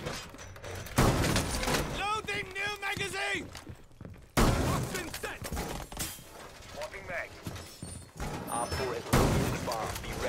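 A shotgun fires loudly several times.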